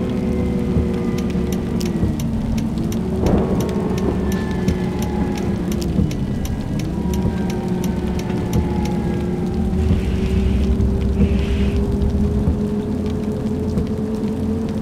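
Rain patters steadily on a windscreen.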